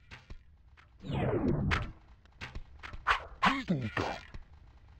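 A sword swooshes and clangs in a fight.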